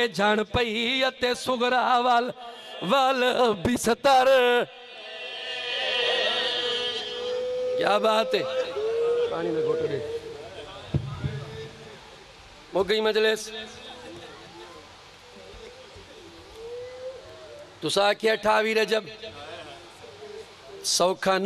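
A man speaks passionately into a microphone over a loudspeaker.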